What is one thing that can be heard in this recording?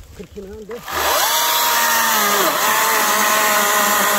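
A chainsaw starts up and whines steadily.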